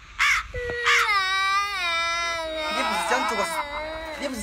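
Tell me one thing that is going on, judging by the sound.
A young boy wails and cries loudly.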